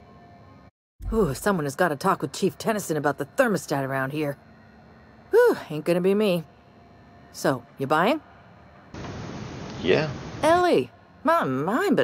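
A young woman speaks calmly and cheerfully, close by.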